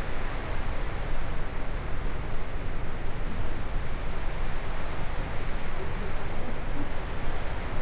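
A waterfall roars loudly and steadily just outside, echoing in a stone tunnel.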